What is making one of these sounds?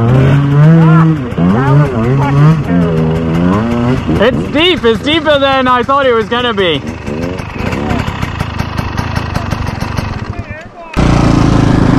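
A dirt bike engine idles and revs up and down nearby.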